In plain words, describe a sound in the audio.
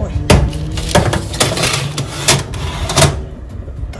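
A baking tray slides onto an oven rack with a metal scrape.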